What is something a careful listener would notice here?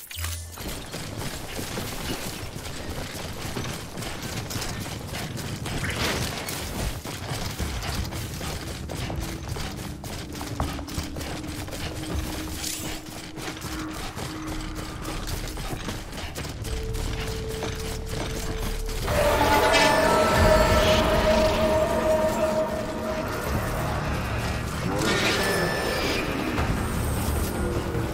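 Footsteps swish through tall grass at a steady pace.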